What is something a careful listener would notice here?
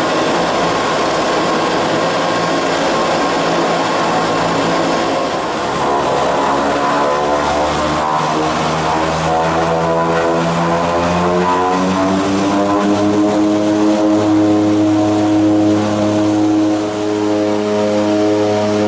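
A propeller engine roars steadily, then climbs in pitch as it speeds up.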